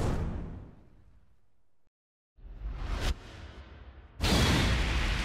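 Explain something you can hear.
A burst of flames roars and slowly fades.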